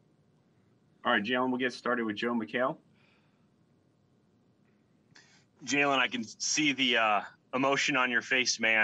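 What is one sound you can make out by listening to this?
A young man speaks into a microphone in a relaxed, amused way.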